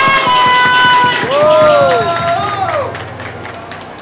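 A crowd of young people whoops and cheers outdoors.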